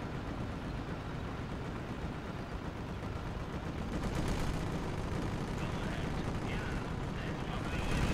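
Tank engines rumble and clank.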